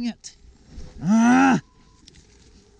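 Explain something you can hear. A man groans after a crash.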